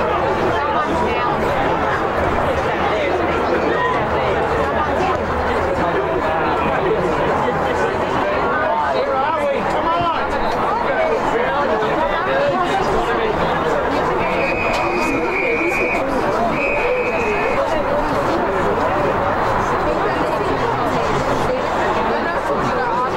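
A crowd of spectators chatters and shouts nearby.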